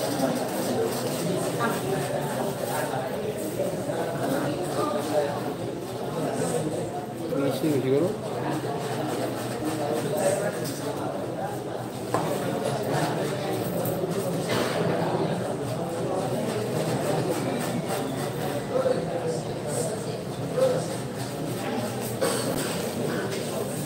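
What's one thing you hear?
A crowd of young spectators chatters and murmurs nearby.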